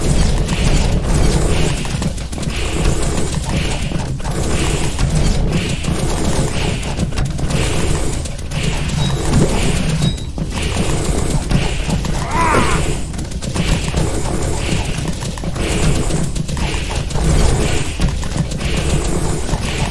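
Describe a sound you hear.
Rapid blasts and zaps of shots fire again and again.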